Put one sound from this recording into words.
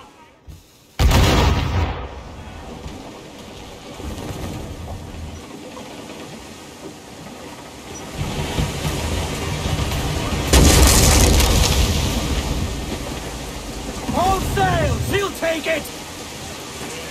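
Strong wind roars over open water.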